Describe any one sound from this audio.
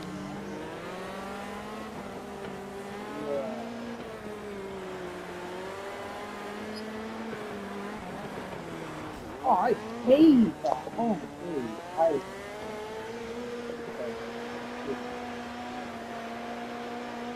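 A racing car engine whines steadily, its pitch rising and falling with speed.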